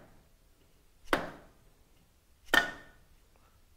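A rubber mallet thumps against a metal engine part.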